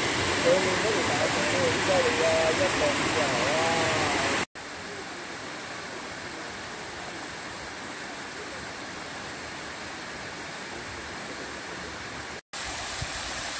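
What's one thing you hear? Water pours over a concrete weir.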